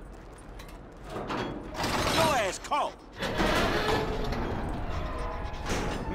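A heavy metal sliding door rumbles and scrapes open.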